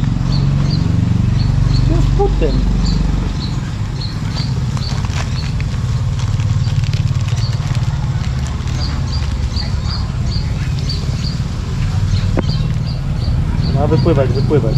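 Water sloshes as a plastic bag is dipped into a pond.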